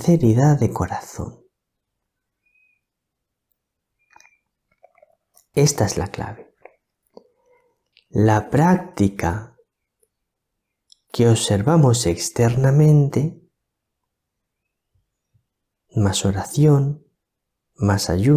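A middle-aged man speaks calmly and clearly into a close microphone, with pauses.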